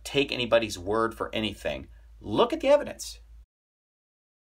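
A man speaks close by, with animation.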